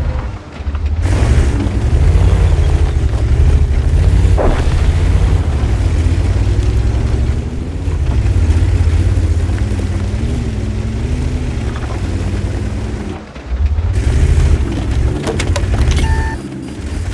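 A tank engine rumbles and roars as the tank drives.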